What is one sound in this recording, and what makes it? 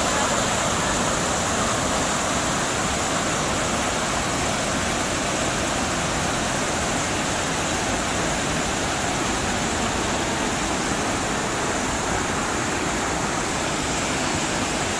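Water rushes and splashes loudly down a waterfall close by.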